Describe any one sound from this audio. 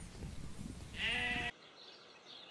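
A sheep bleats loudly.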